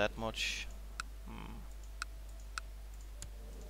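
Soft interface clicks sound a few times.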